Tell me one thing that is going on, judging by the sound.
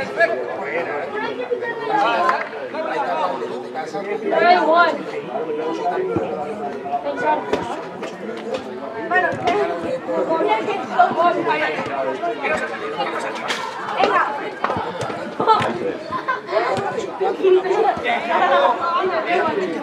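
Children shout and call out to each other across an open field.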